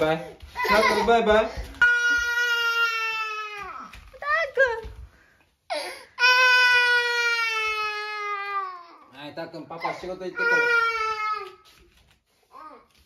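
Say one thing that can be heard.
A toddler wails and sobs loudly close by.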